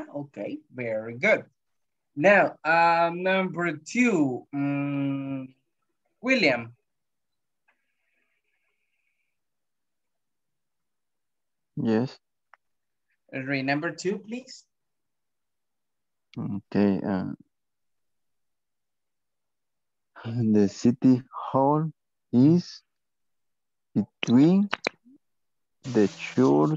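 A woman speaks calmly in short phrases over an online call, with long pauses.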